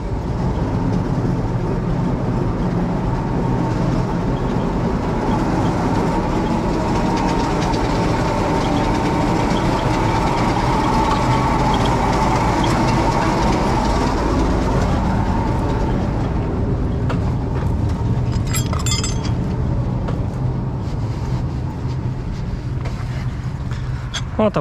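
A small drone's propellers buzz steadily close by.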